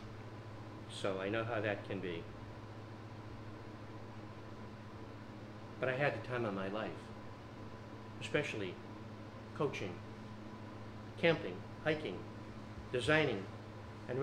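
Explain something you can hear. An older man speaks slowly and calmly into a microphone, with pauses between phrases.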